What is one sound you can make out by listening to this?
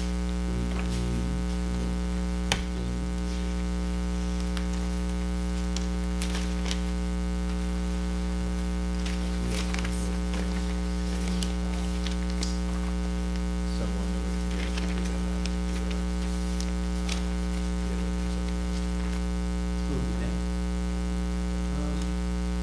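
Papers rustle and shuffle close by.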